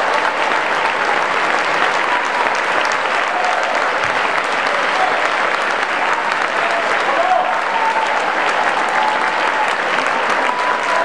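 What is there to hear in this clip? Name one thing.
Men in the audience cheer and whoop.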